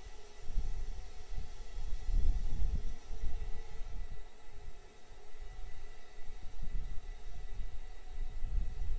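Gas hisses steadily from a venting rocket in the distance.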